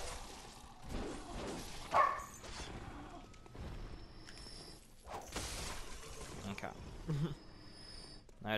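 A blade slashes and strikes in a fight.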